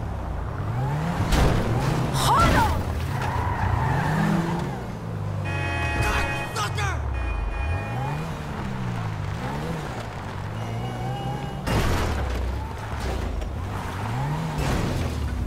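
A small car engine revs up and down.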